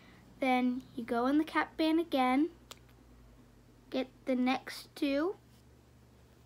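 A young girl talks close by in a high, lively voice.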